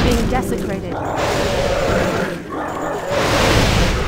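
Creatures clash and strike in battle.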